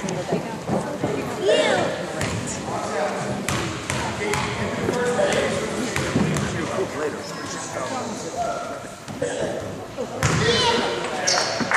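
Children and adults chatter and call out in a large echoing gym.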